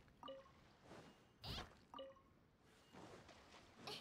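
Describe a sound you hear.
Water splashes as something skims across it.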